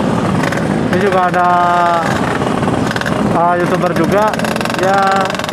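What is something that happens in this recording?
A motorcycle engine revs up sharply several times nearby.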